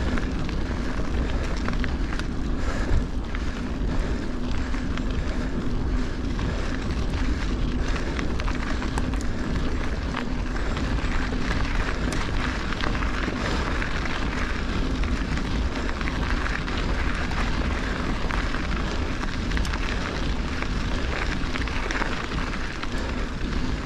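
Bicycle tyres crunch and rumble over a gravel track.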